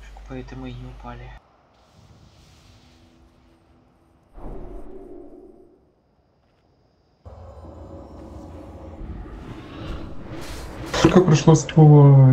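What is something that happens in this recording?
Magic spells whoosh and crackle in a game.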